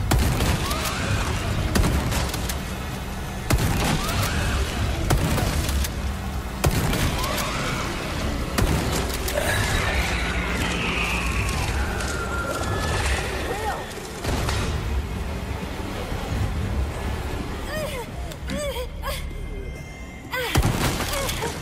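A shotgun fires loud blasts that echo.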